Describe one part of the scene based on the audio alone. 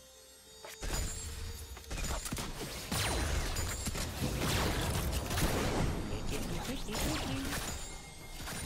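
Characters' weapons clash and strike repeatedly.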